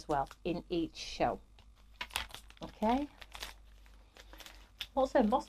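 Plastic sleeves crinkle and rustle in hands.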